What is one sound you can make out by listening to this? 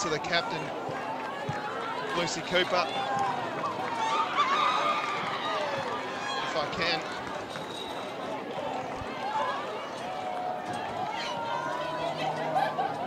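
A crowd of young women cheers and chatters excitedly outdoors.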